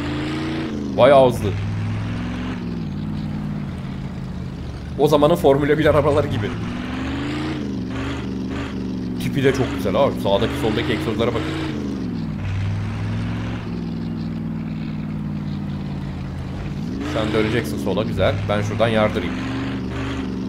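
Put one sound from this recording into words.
Car tyres screech on the road during turns.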